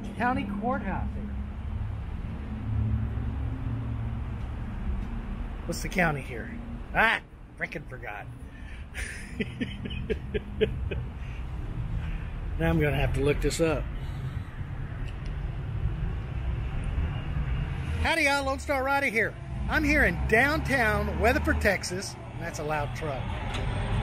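A middle-aged man talks casually nearby outdoors.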